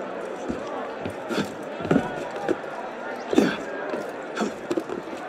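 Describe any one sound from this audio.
Hands and boots scrape and knock against a stone wall during a climb.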